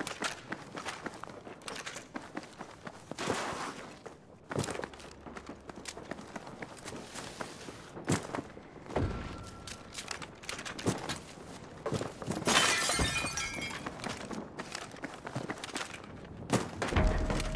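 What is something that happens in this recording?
Footsteps thud quickly across hard floors and ground.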